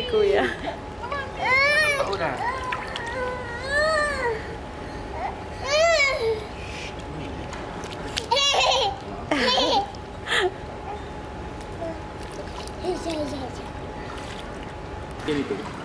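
Water splashes gently in a pool.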